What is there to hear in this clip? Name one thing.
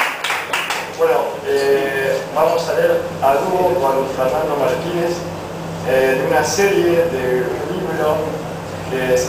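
A man sings.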